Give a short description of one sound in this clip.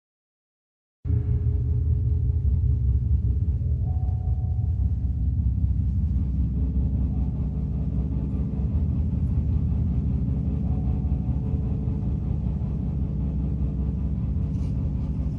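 An orchestra plays slow, droning music.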